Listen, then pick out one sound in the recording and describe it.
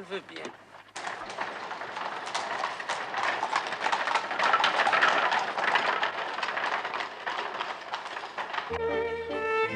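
Carriage wheels and hooves rumble over cobbles.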